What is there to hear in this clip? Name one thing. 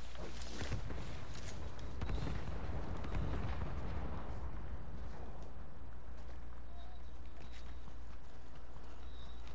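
Footsteps run quickly through grass.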